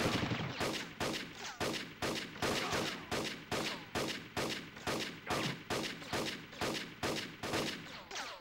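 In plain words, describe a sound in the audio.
A rifle fires shot after shot in a steady rhythm.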